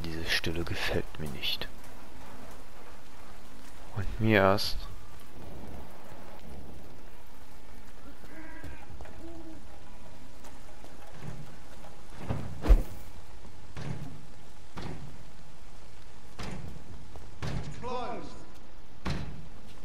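Footsteps fall on wet cobblestones.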